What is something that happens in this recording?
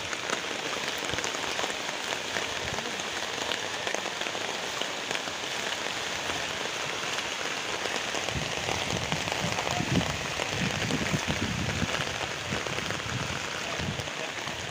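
Rain falls steadily outdoors, hissing on flooded ground.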